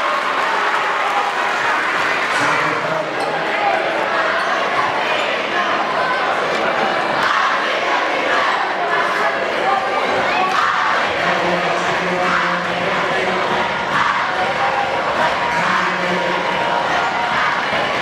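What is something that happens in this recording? A large crowd of young people cheers and shouts loudly in an echoing gym.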